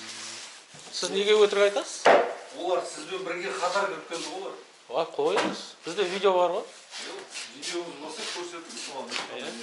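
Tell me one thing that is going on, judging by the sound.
A man speaks up close in a firm, clear voice.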